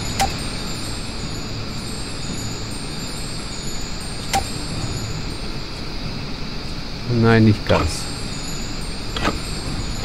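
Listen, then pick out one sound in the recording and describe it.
Metal pipes creak and clank as they shift into place.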